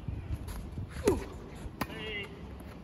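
A tennis racket strikes a ball with a sharp pop outdoors.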